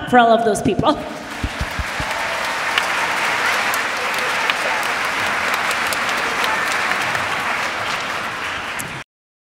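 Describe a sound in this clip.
A crowd of children and adults applauds.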